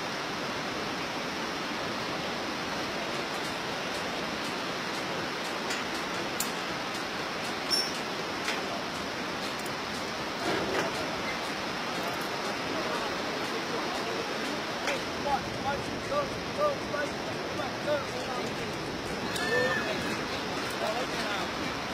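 Wind rushes steadily.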